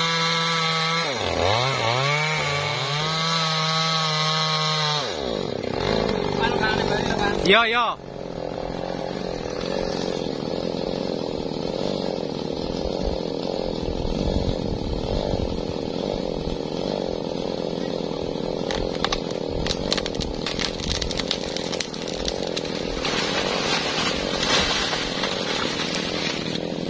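A chainsaw engine revs and whines while cutting through a tree trunk.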